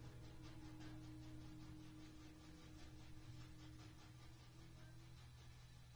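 An electric guitar plays along.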